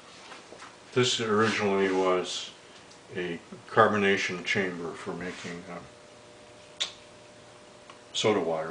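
An elderly man talks calmly up close.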